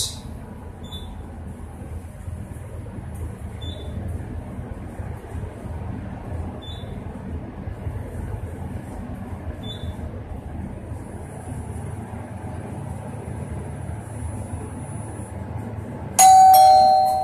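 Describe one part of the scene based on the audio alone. An elevator car hums steadily as it travels down.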